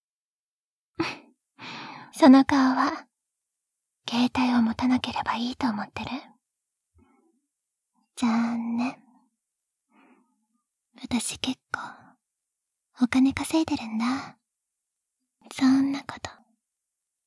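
A young woman speaks softly and closely into a microphone, in short phrases with pauses.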